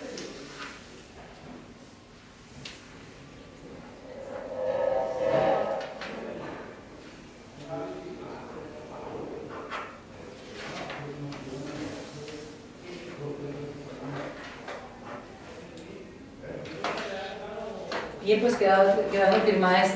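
Paper rustles as sheets are passed along a table.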